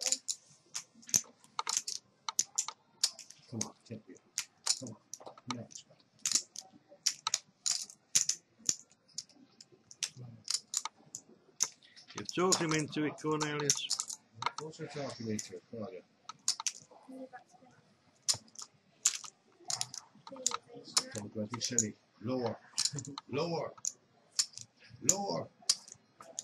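Poker chips click and clatter against each other.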